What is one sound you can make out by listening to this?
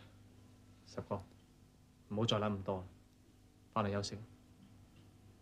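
A second man speaks calmly.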